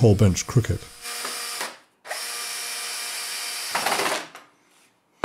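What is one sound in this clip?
A cordless drill whirs as it drives screws into wood.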